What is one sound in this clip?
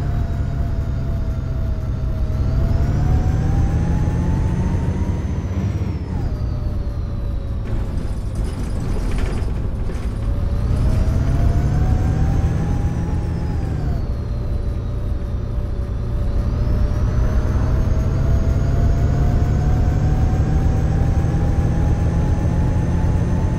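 A bus engine hums and whines, rising and falling as it speeds up and slows down.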